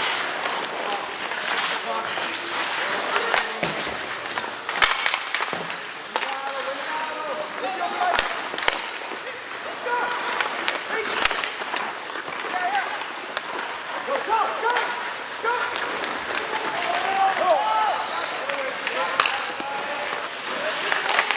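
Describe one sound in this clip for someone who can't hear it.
Spectators shout and cheer in an echoing rink.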